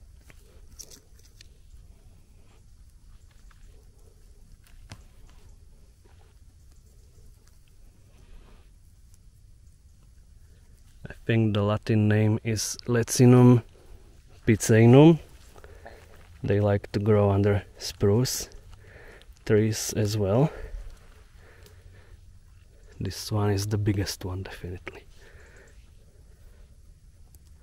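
Dry leaves and twigs rustle softly as a hand pulls mushrooms from the forest floor.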